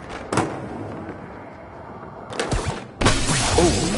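Skateboard wheels roll and clatter over a hard floor.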